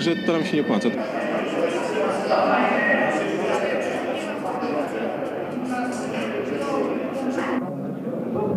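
A crowd chatters in a large echoing hall.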